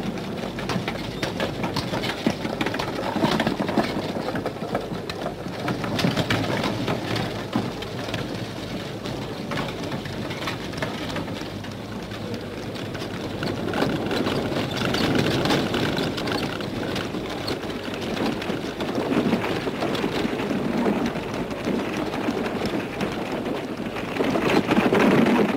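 Horse hooves clop on a dirt street.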